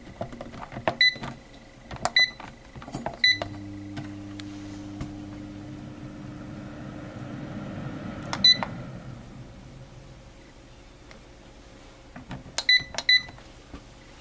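An appliance beeps as its buttons are pressed.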